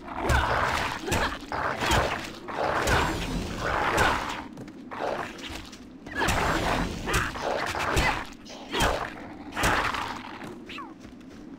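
Weapons slash and strike enemies in quick repeated blows.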